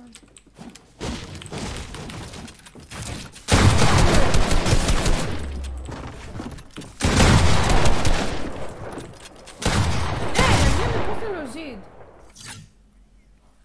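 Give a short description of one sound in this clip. Wooden walls clatter and thud as they are quickly built.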